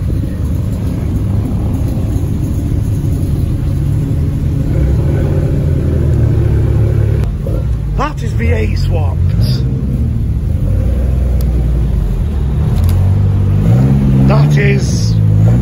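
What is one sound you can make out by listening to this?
Tuned car engines rumble low as cars roll by in a line.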